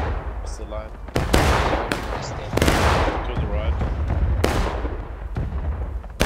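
Muskets fire in loud, scattered shots outdoors.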